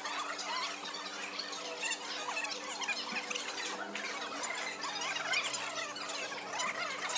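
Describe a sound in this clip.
A crowd of diners chatters in the background.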